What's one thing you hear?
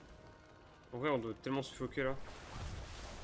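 A young person speaks briefly and with animation close to a microphone.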